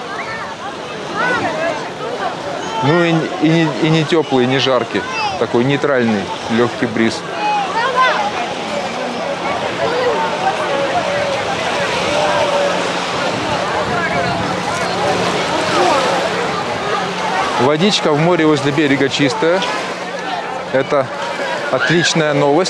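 A crowd of adults and children chatter and call out across a busy beach.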